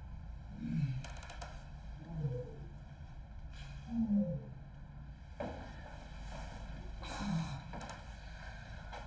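A woman breathes heavily and moans close by.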